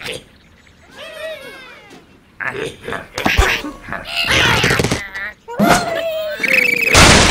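Cartoon birds squawk as they are flung through the air.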